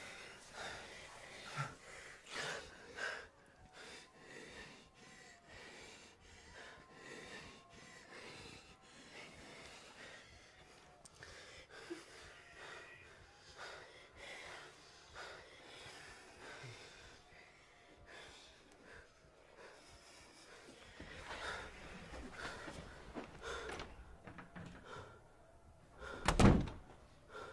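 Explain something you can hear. A young man breathes heavily and gasps.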